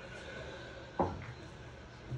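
A cue strikes a billiard ball with a sharp clack.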